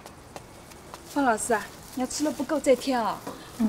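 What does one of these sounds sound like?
A woman speaks cheerfully close by.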